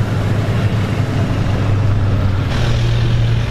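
A sports car engine rumbles deeply as the car rolls past.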